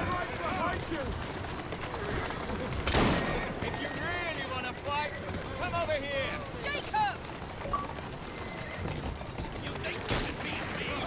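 A horse-drawn carriage rattles over a cobbled street.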